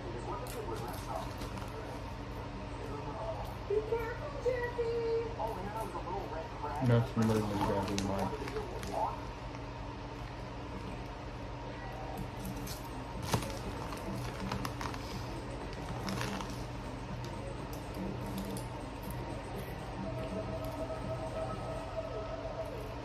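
A chip bag crinkles and rustles.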